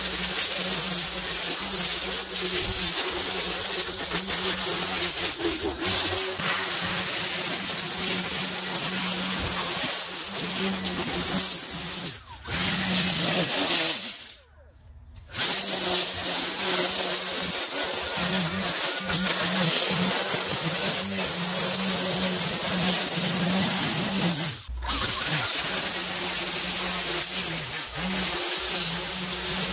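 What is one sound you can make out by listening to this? A string trimmer whines steadily, cutting through tall grass.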